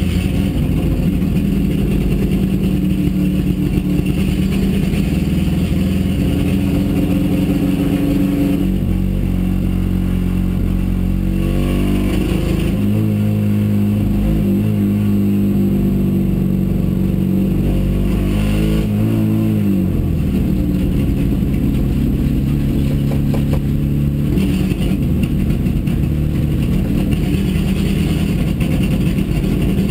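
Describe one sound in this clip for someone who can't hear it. A rally car engine roars loudly from inside the cabin, its pitch rising and falling through the gears.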